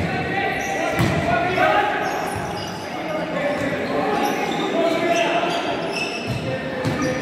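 A ball is kicked with a sharp thud in a large echoing hall.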